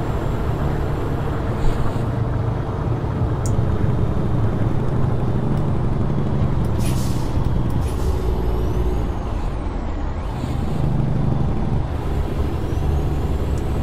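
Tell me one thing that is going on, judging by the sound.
A truck's diesel engine rumbles steadily while driving.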